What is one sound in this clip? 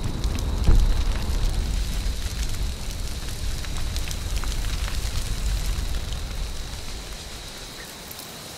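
A deep magical roar swirls and rumbles, then fades away.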